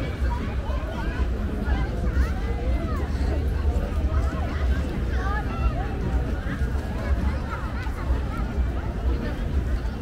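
Children shout and squeal close by.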